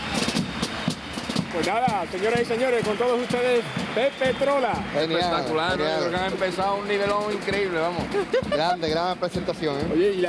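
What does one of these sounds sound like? A group of men sings together in harmony.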